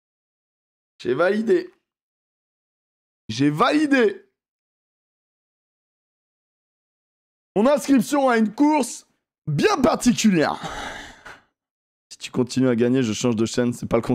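A young man speaks with animation, close to a microphone, in short bursts.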